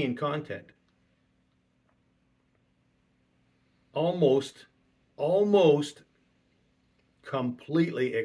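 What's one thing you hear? A middle-aged man speaks calmly and emphatically into a close microphone, pausing between phrases.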